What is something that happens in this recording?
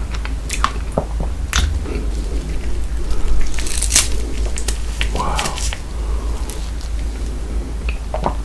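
A man chews with wet, crackling mouth sounds up close.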